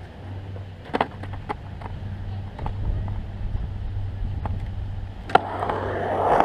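Skateboard wheels clack on the edge of a concrete ramp.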